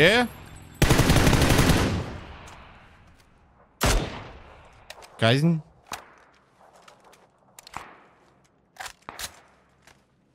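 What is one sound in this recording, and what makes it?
A rifle fires loud single shots that echo away outdoors.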